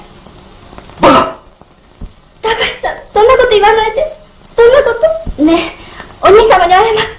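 A woman cries out and speaks tearfully, close by.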